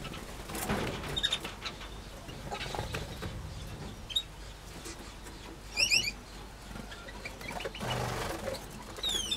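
Small birds chirp and tweet nearby.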